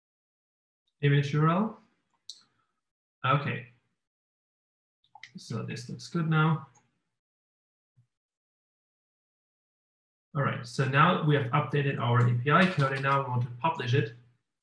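A man talks calmly through a microphone, in short bursts with pauses.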